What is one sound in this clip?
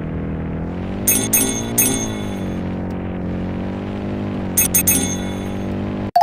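Coins chime as they are collected.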